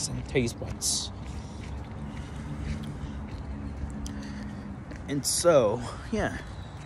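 A young man speaks close by, casually.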